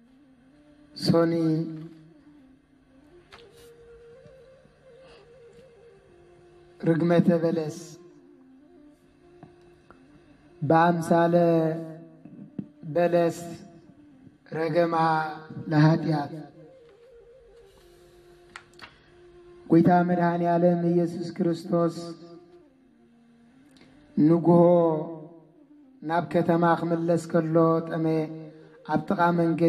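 A man chants slow melodic phrases into a microphone, pausing between lines.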